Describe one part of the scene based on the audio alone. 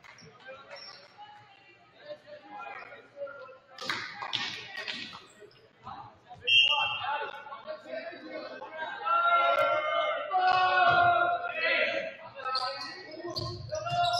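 Players shout and call out to each other in a large echoing gym.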